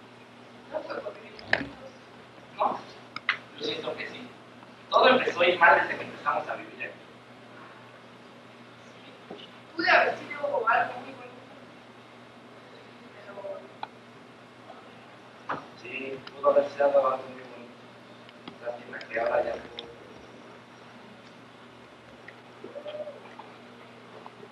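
A young man speaks on a stage, heard from the audience in a room with some echo.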